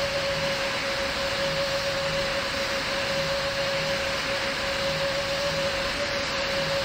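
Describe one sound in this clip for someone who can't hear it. A jet engine drones steadily with a constant whine.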